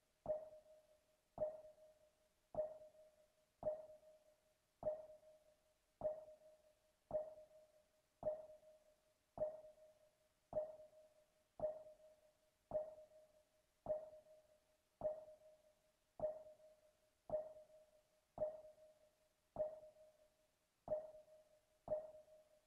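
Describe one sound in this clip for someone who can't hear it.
A short menu tone beeps at each step, about once a second.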